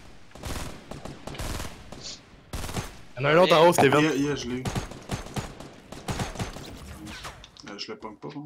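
A rifle fires several sharp shots.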